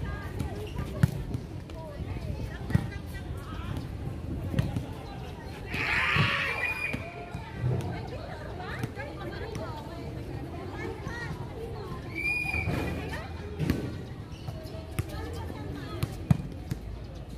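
A volleyball is struck by hands outdoors.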